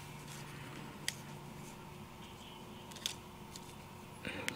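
Paper pieces are pressed and tapped down on card.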